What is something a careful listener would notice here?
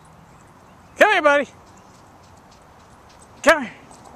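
A dog barks twice in short, high yelps outdoors.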